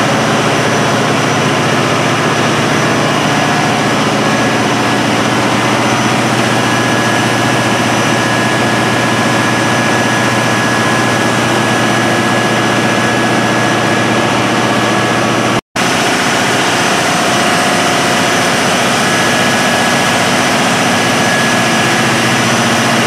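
Large diesel engines roar steadily nearby.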